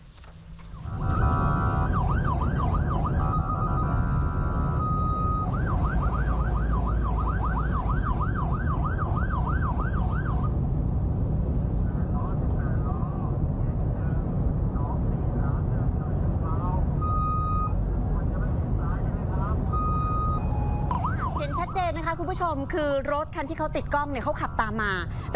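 An ambulance siren wails loudly close by.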